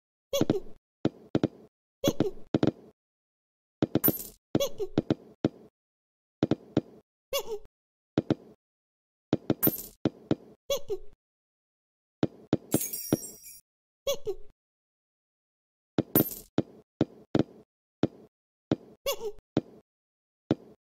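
Cartoon game sound effects blip and boing as balls bounce and are thrown.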